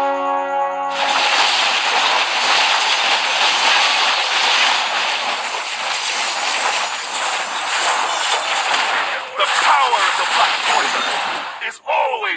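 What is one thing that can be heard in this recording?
Game battle effects clash and crackle with rushing noise.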